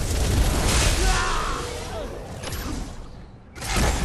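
Magic spells burst with loud crackling blasts.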